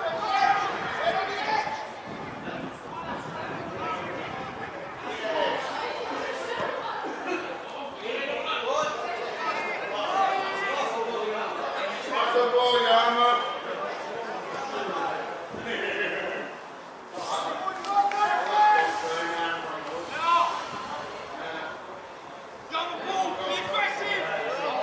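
Players shout to each other across an outdoor pitch.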